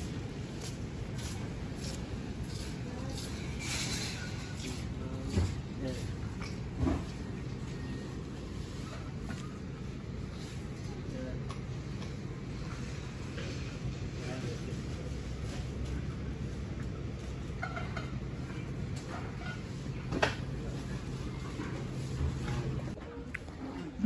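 Shoppers murmur faintly in the distance in a large indoor hall.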